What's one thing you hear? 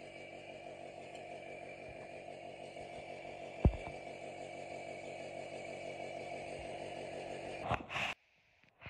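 An electric motor hums steadily, then cuts off.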